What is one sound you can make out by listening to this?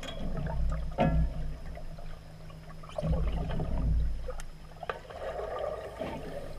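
A diver underwater breathes out, and bubbles gurgle and rise.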